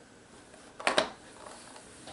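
A cardboard box is set down on a wooden table with a couple of soft knocks.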